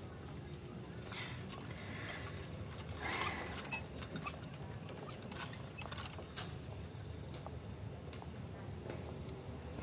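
A wheelchair rolls quietly across the floor.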